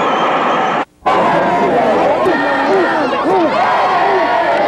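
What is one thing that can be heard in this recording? A group of young women cheer and shout excitedly.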